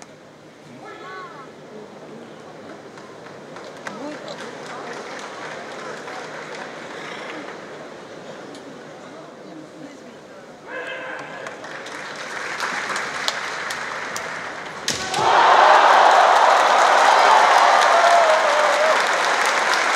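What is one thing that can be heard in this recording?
Fencers shout sharply.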